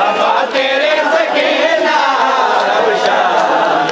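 Men slap their bare chests in rhythm.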